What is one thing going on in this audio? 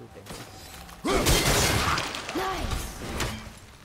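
A warrior grunts loudly.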